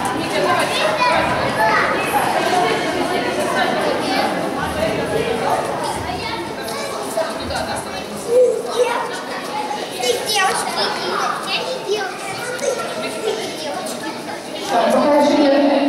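Young children chatter and call out in an echoing hall.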